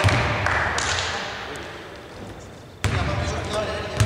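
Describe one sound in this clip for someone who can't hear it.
A basketball bounces with hollow thuds on the court.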